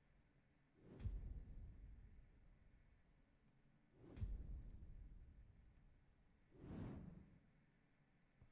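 Loud whooshing bursts sound as game rewards pop up one after another.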